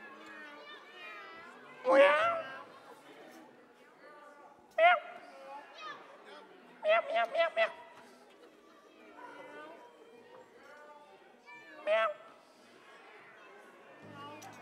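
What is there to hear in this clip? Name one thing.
A large choir sings in a hall.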